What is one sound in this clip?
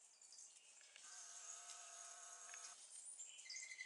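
A turkey gobbles loudly nearby.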